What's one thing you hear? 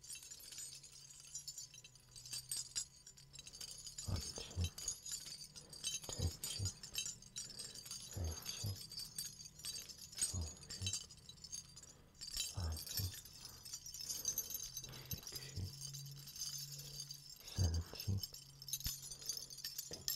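Small jingle bells jingle and rattle close by, shaken in bursts.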